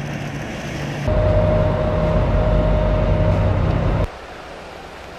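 A boat engine hums loudly up close.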